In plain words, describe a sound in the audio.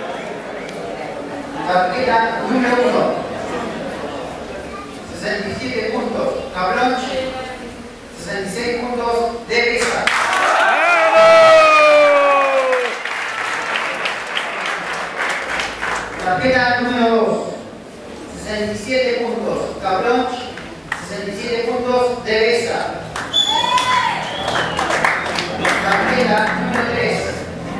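A man announces loudly through a loudspeaker, drawing out his words in an echoing hall.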